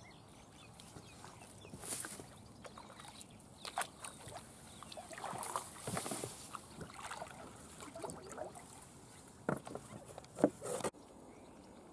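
A paddle splashes in water as a kayak moves through reeds.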